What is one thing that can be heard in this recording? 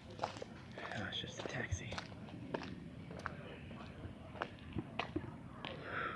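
Footsteps tap on a concrete path outdoors.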